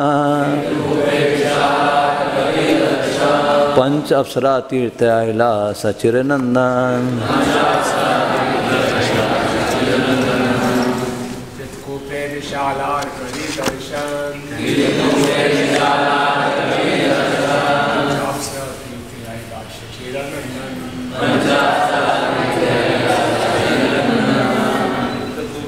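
A man reads aloud and chants through a microphone in a calm, steady voice.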